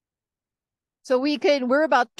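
A woman speaks with animation through an online call.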